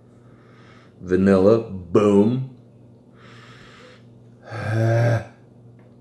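A man blows into a small call cupped in his hands, making short wavering tones.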